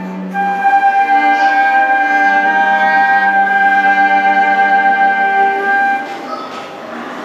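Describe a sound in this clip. Two flutes play a bright melody together.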